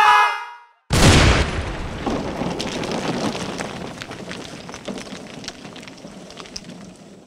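Broken chunks tumble and clatter.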